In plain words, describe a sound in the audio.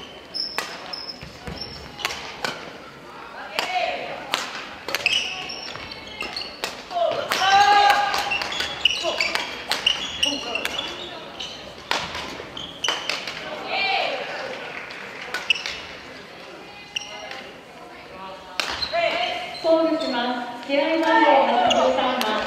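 Shuttlecocks are hit with sharp racket smacks in a large echoing hall.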